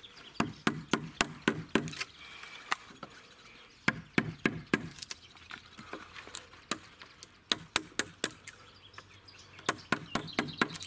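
A mallet taps sharply on a wood chisel in quick bursts.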